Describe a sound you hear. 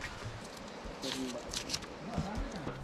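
A paper ticket rustles between fingers.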